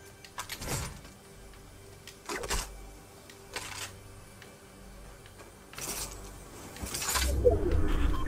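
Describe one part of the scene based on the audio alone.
Short clattering pickup sounds ring out as weapons are grabbed one after another.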